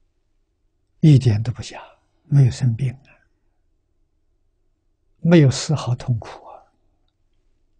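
An elderly man speaks calmly in short phrases.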